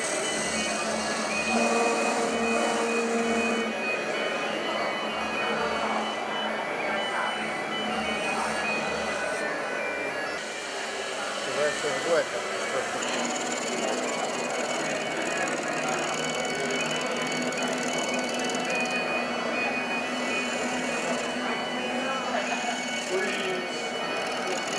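A chisel scrapes and cuts into spinning wood.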